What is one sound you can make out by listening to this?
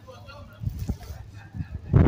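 A dog's paws patter on brick paving.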